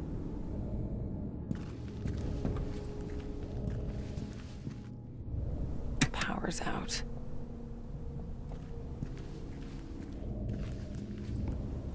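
Footsteps fall slowly on a hard floor.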